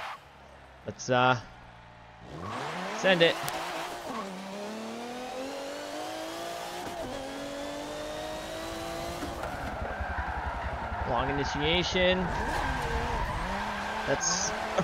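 Tyres squeal as a car slides sideways.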